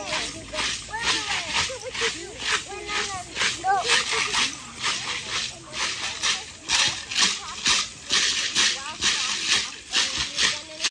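Seed rattles on dancers' ankles shake in a steady, fast rhythm.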